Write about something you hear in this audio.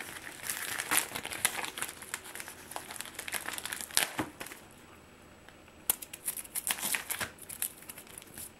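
A plastic padded mailer crinkles in someone's hands.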